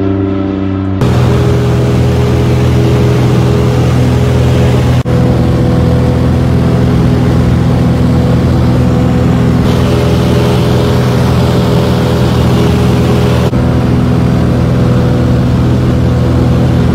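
A small plane's engine roars steadily, heard loud and close from inside the cabin.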